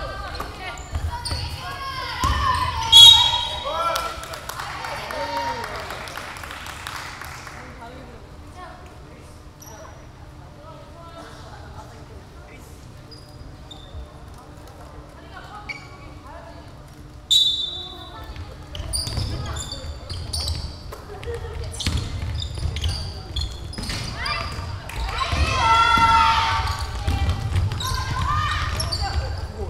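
Young women players shout and call out to each other in a large echoing hall.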